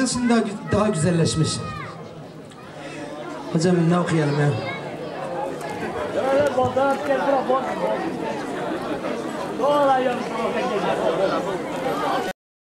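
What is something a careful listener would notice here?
A lute is strummed along with the singing.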